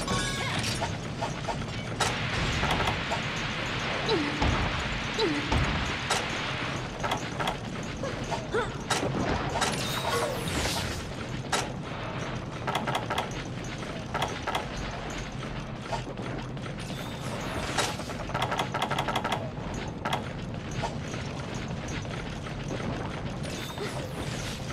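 Metal blades clang and slash in quick strikes.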